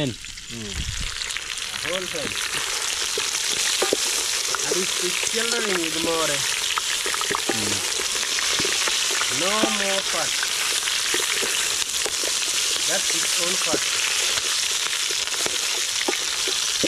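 Meat sizzles and bubbles in a pot over a fire.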